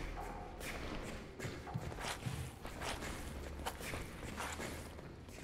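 Soft footsteps shuffle across a hard floor.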